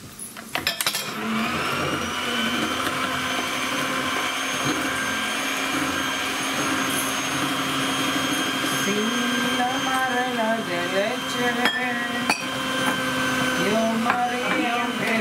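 An electric hand mixer starts up and whirs steadily.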